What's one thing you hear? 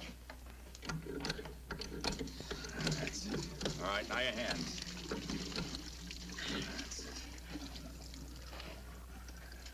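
Water splashes and gushes from a hand pump.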